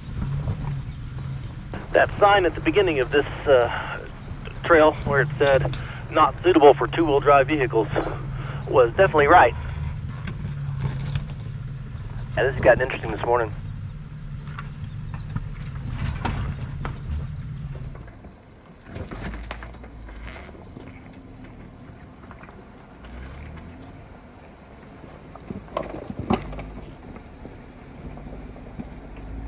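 A vehicle engine rumbles low and steady as it crawls over rocks.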